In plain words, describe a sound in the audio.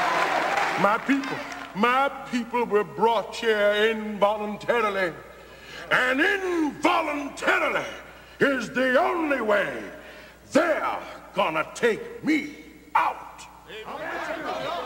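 A man preaches loudly and with animation into a microphone.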